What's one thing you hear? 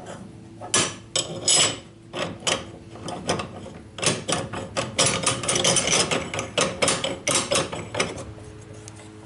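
Small steel parts clink and knock against a steel plate.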